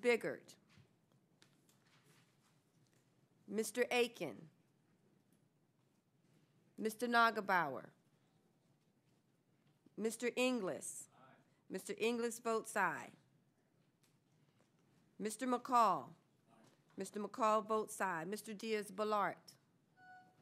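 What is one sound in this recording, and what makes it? A woman speaks calmly into a microphone in short phrases with pauses.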